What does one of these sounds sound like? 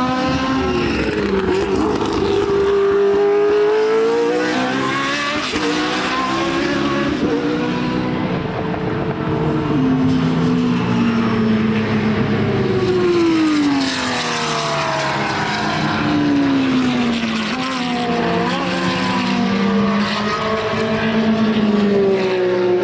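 Racing car engines roar and rev loudly as they speed past.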